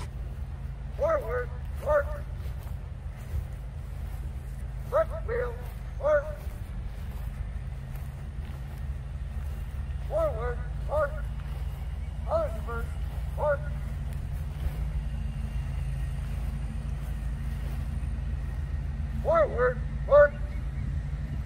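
A young man shouts drill commands at a distance outdoors.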